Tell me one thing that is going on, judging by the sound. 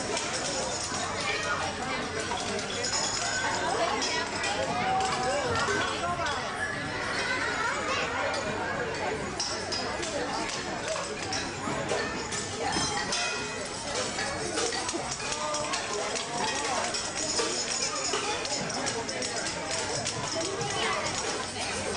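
Tambourines jingle and rattle.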